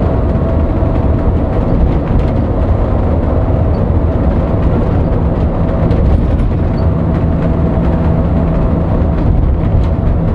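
A large vehicle's engine drones steadily as it drives.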